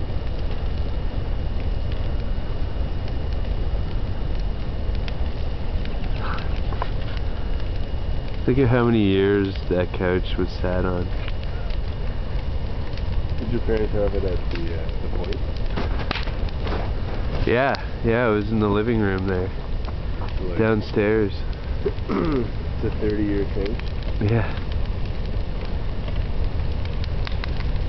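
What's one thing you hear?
A large fire roars steadily outdoors.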